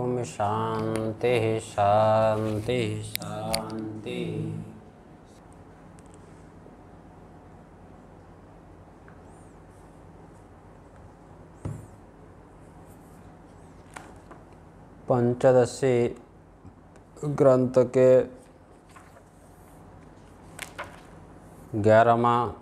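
A middle-aged man speaks calmly and close to a microphone, in short phrases with long pauses.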